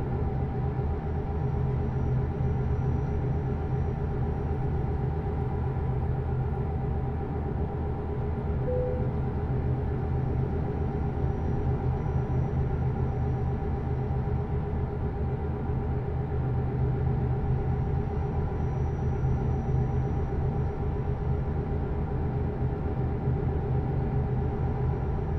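Tyres rumble steadily on the road.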